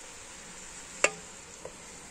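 A spoon clinks once against a metal pot.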